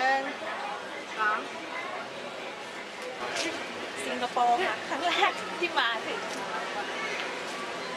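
A busy crowd murmurs outdoors.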